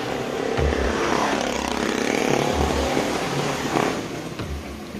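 A motorcycle engine hums nearby as it passes.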